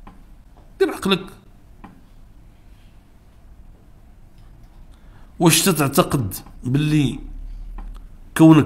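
An elderly man speaks with emphasis into a microphone, pausing between phrases.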